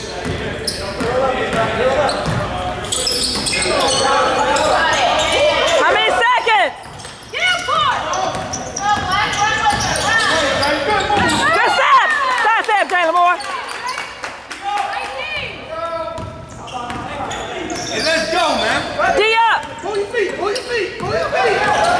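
Sneakers squeak sharply on a hard floor in a large echoing gym.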